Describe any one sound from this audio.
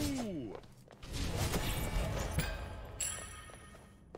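A bright magical chime rings out and swells.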